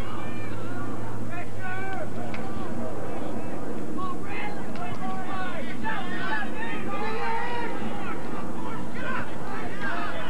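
Young players shout and call to each other outdoors.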